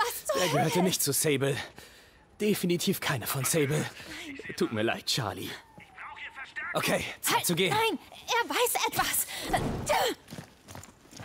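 A young man speaks with animation.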